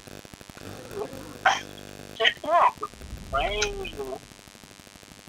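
A dog barks loudly nearby.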